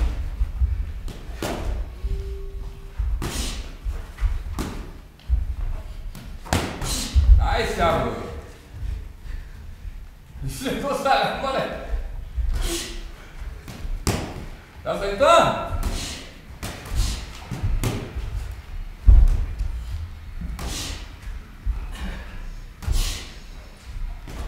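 Boxing gloves thud against each other in quick bursts.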